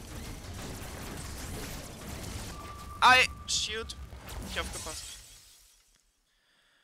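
Sci-fi game combat sounds crackle and rumble, then fade away.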